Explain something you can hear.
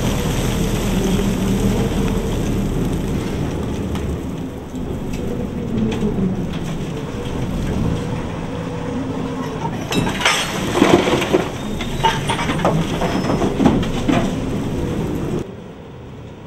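A large excavator's machinery groans and whines steadily.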